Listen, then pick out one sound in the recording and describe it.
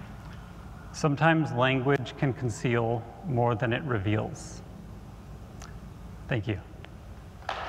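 A young man speaks slowly into a microphone in a large hall.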